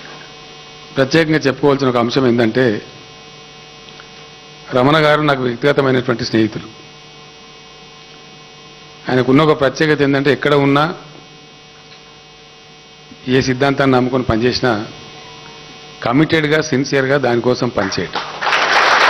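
A man speaks into a microphone through loudspeakers, in short phrases with pauses.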